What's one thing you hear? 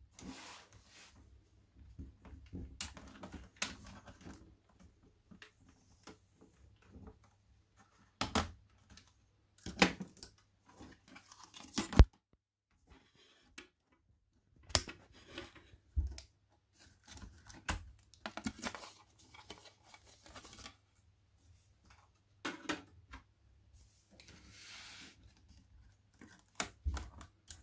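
Plastic laptop parts click and clatter as they are handled.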